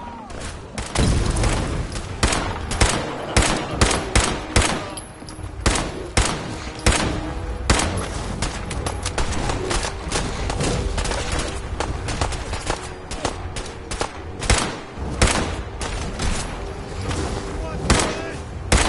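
A rifle fires rapid shots.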